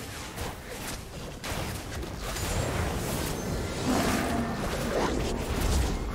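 Game sound effects of spells and blows burst and crackle.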